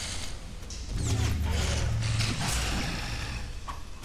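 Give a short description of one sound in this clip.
Sword blows clash and thud in combat.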